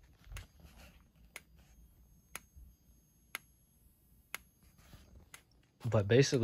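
A fire alarm strobe clicks sharply once every second.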